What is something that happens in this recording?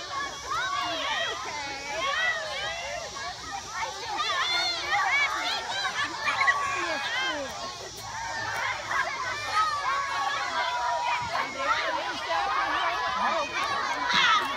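A crowd of children shout and squeal excitedly outdoors.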